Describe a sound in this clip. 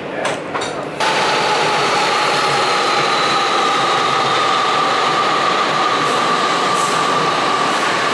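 A train rushes past close by with a loud roar and a high whine.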